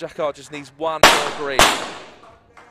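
Two pistol shots crack in quick succession and ring out briefly.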